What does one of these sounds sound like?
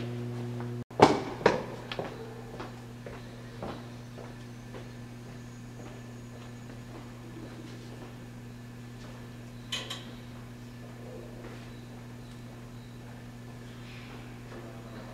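Footsteps tap along a hard floor in a long hallway.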